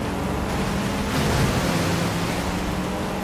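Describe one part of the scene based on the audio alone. Water splashes loudly around a car.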